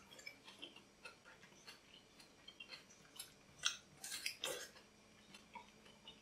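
A young man chews and munches quietly.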